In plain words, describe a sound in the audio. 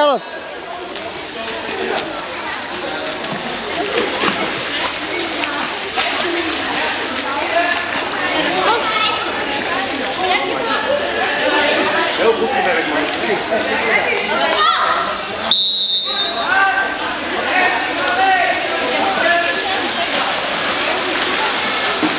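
Water splashes as water polo players swim and grapple in an echoing indoor pool.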